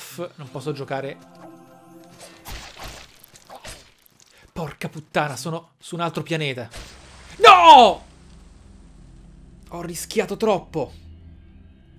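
A young man talks with animation close to a headset microphone.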